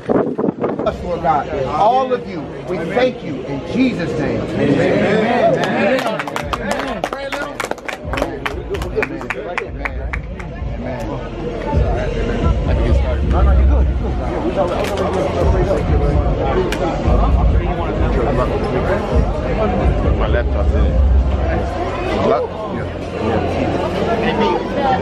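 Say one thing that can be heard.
A crowd of men talk and murmur close by in a large echoing hall.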